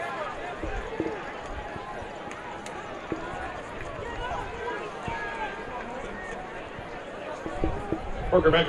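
A crowd murmurs and chatters in the stands of an open-air stadium.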